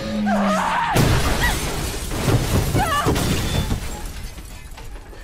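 A vehicle crashes with a loud, rushing roar that slowly fades.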